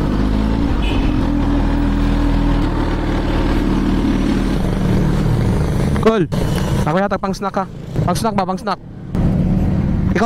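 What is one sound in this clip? A motorcycle engine idles with a low, steady rumble.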